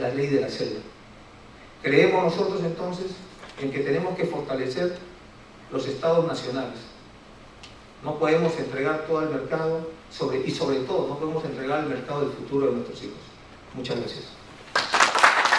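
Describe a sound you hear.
A man speaks calmly through a microphone in a hall.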